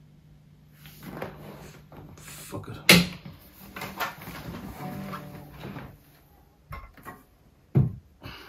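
A guitar knocks and bumps as it is moved about.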